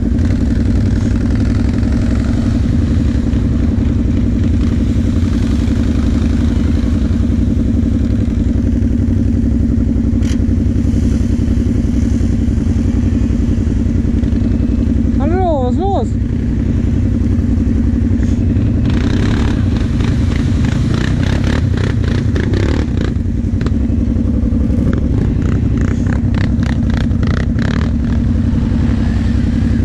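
Quad bike engines rumble and rev loudly close by.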